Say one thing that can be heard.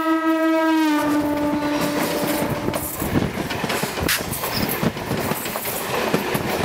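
A train's wheels rattle and clatter over the tracks.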